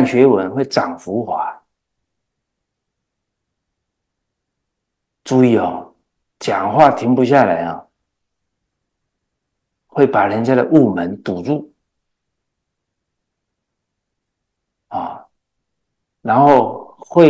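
An elderly man speaks calmly into a close microphone, with long pauses.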